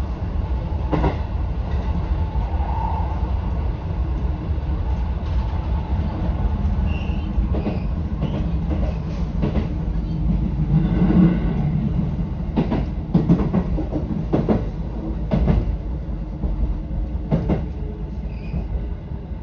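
Train wheels clack over rail joints and points.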